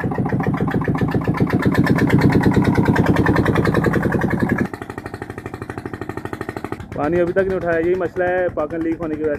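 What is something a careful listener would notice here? A diesel engine chugs steadily with a fast, rhythmic thump.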